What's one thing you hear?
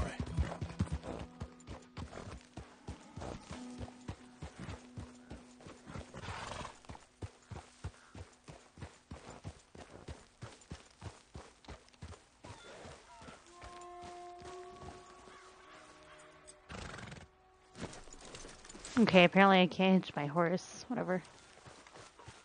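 A horse's hooves thud steadily on a dirt path.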